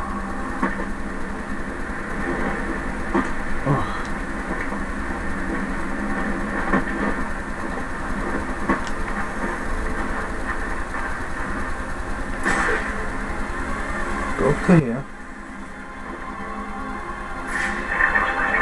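Video game music and effects play from a television speaker, heard through the room.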